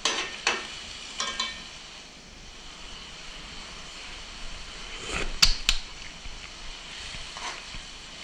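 A utensil scrapes and clinks in a cooking pot.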